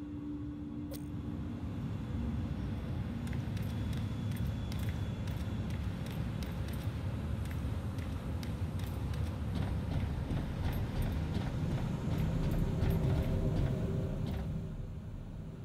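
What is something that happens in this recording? Footsteps ring on hard metal floors.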